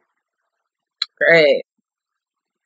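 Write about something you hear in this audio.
A young woman close by lets out a short, loud laugh.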